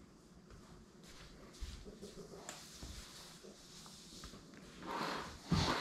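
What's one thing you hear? Footsteps tap on a hard floor close by.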